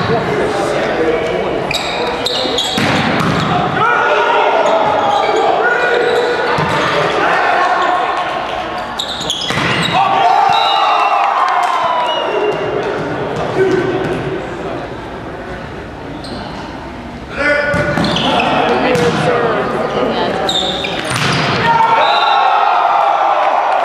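Young men shout and call out to each other in a large echoing gym.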